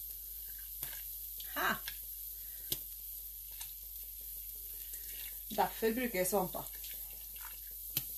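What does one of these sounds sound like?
Water trickles and drips from wet yarn into a pot of water.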